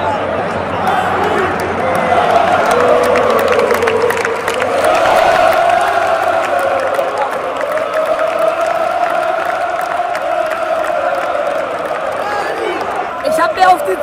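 A large crowd chants loudly together in a stadium.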